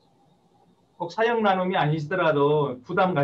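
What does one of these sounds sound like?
A second man speaks with animation over an online call.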